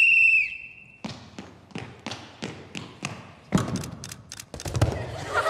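Quick footsteps pound on a wooden floor.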